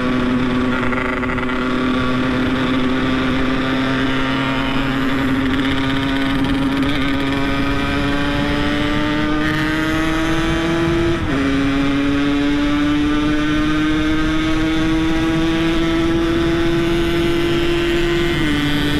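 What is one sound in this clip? A motorcycle engine hums steadily and slowly rises in pitch, dropping briefly as gears change.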